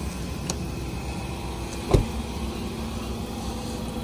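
A car door shuts with a solid thud.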